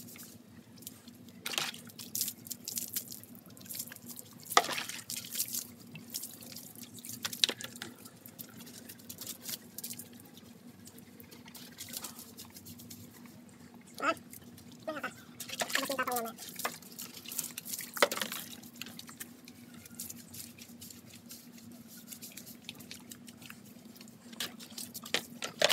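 Water splashes from a scoop onto a wet dog and the ground.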